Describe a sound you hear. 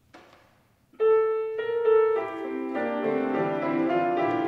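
A piano plays a slow melody.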